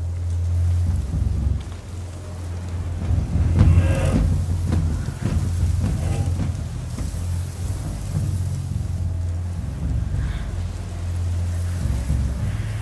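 Tall grass rustles as people creep through it.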